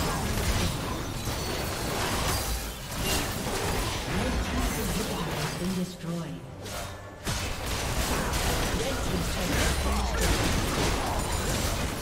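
Spell effects crackle and burst in a busy fight.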